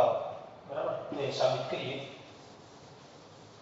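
Chalk scratches and taps on a chalkboard.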